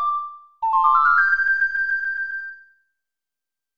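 An ocarina plays a short rising tune.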